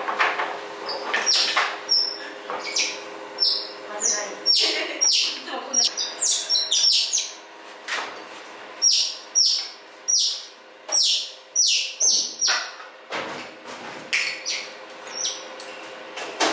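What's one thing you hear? Otters chirp and squeak in quick, high-pitched calls.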